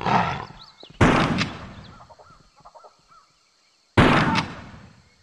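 Pistol shots bang and echo.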